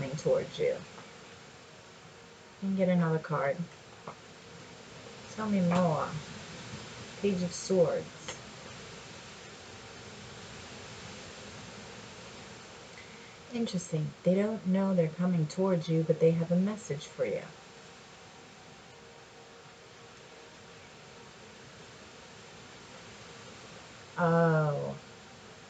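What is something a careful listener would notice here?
A woman talks calmly and close by, in short bursts.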